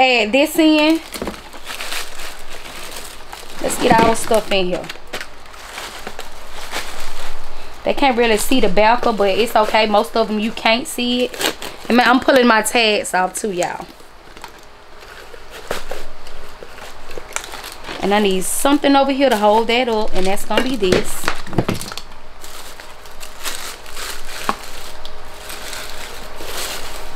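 Plastic wrapping and paper shreds rustle as items are handled.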